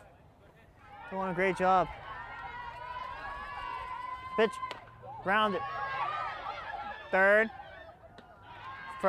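A crowd cheers and claps outdoors.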